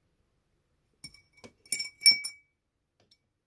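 A small metal object clinks against a glass.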